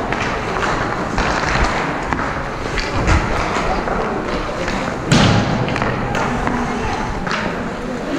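A hockey stick taps and slaps a puck.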